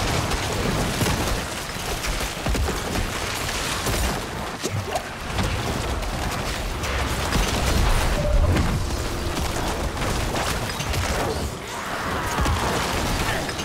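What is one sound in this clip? Game spells crackle and explode in rapid bursts.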